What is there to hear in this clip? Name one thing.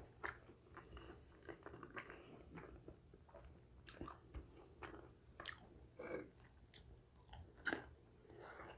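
A woman bites into crisp pastry with a loud crunch.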